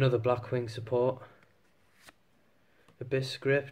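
A trading card slides against other cards.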